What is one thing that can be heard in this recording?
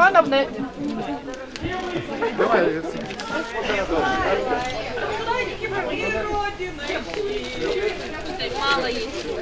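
Several adults talk and chatter nearby outdoors.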